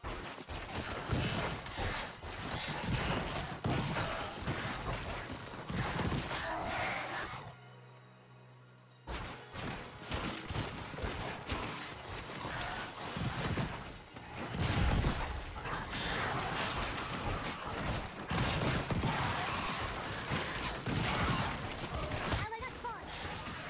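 Weapons clash and strike enemies in a frantic battle.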